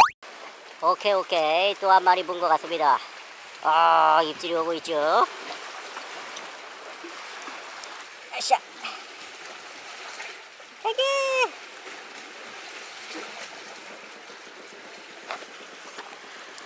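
Sea water laps gently against rocks.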